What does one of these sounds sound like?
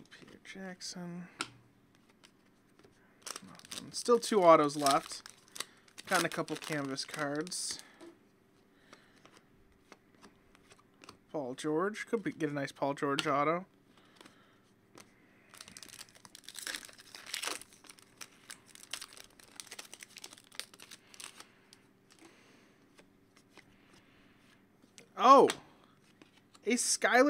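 Foil wrappers crinkle and rustle.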